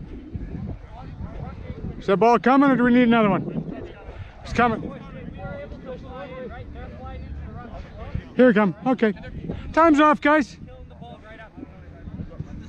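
Other young men call out to each other at a distance outdoors.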